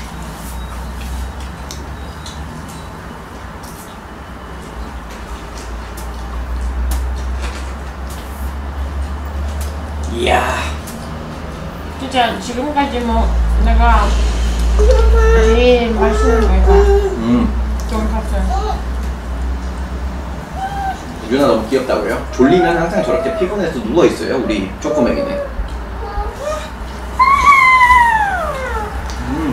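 Crispy fried food crunches as someone chews close to a microphone.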